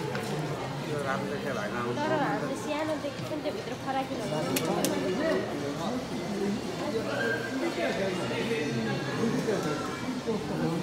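A crowd of men and women chatter nearby in an echoing hall.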